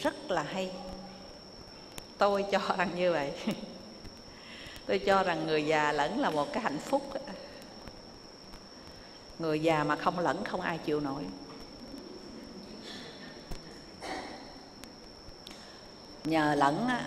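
An elderly woman speaks calmly into a microphone, in bursts with pauses.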